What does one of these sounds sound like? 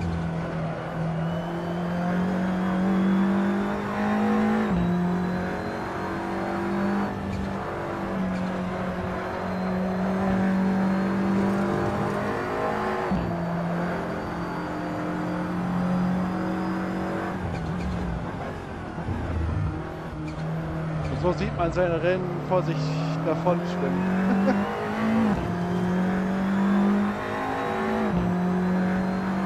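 A racing car engine roars loudly, rising in pitch through each gear and dropping sharply at each gear change.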